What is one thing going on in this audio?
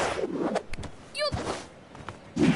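A bright magical sparkle chimes briefly.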